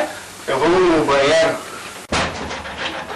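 Several young men sing together nearby.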